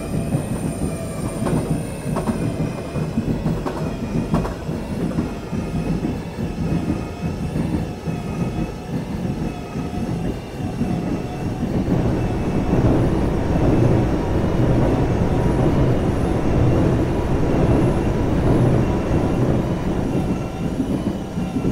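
A train rumbles and rattles along the tracks, growing louder partway through.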